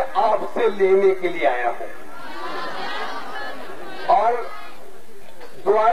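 A man speaks forcefully into a microphone, heard loudly through a loudspeaker outdoors.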